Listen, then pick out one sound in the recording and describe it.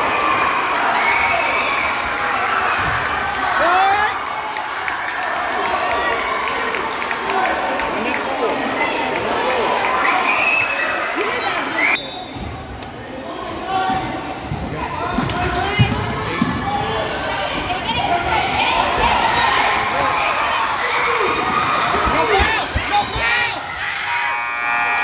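A crowd of spectators chatters in an echoing gym.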